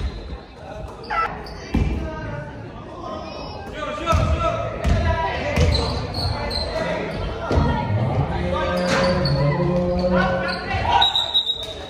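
Young men shout and call out to each other across the hall.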